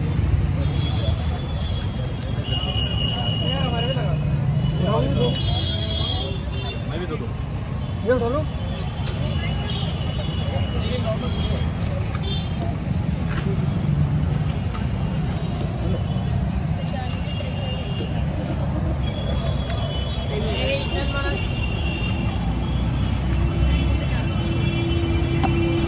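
Men talk nearby in a lively crowd.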